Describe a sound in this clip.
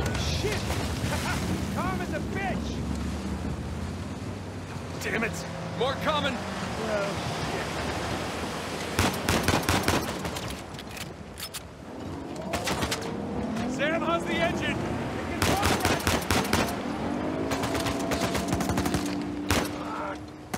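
Stormy sea waves crash and roar.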